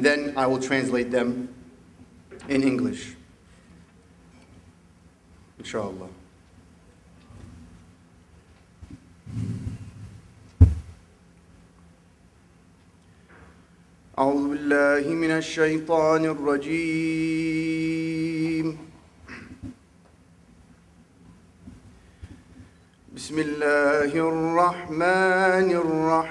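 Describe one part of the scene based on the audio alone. A man speaks slowly and with feeling into a microphone.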